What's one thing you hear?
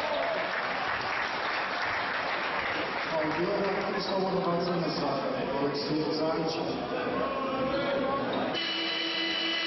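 A crowd in a large echoing hall murmurs and shouts.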